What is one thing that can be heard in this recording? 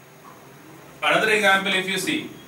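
A man speaks clearly and steadily into a close microphone.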